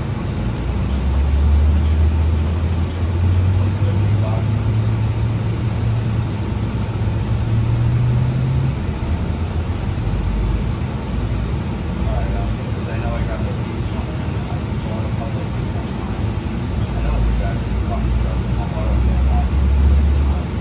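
A bus engine hums steadily as the bus rolls along.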